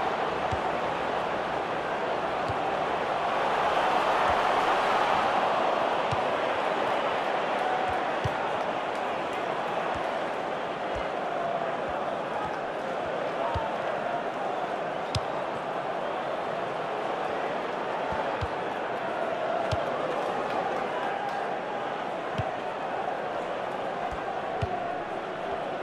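A stadium crowd roars steadily throughout.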